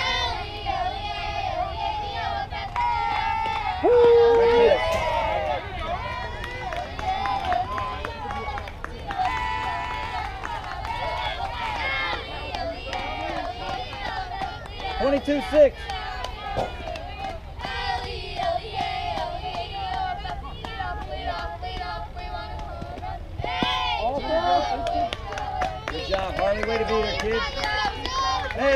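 Young women shout and cheer outdoors across an open field.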